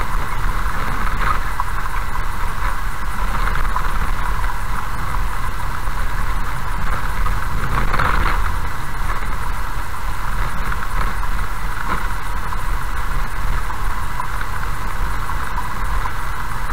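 Tyres crunch and hiss on loose gravel.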